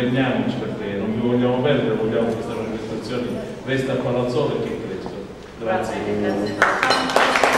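A man sings through a microphone in a reverberant room.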